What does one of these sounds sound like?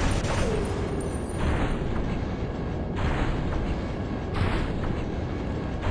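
A giant robot stomps forward with heavy, thudding metallic footsteps.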